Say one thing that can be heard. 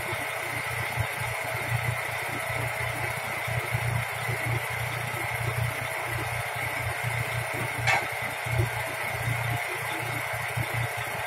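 A heavy truck engine idles nearby with a low rumble.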